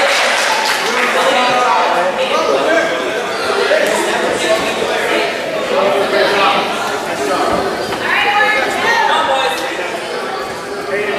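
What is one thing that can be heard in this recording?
Spectators on the sidelines cheer and shout in an echoing hall.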